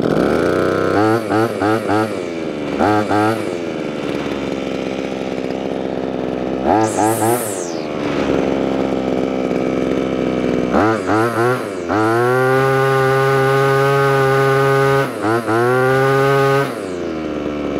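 A two-stroke string trimmer engine revs in short bursts.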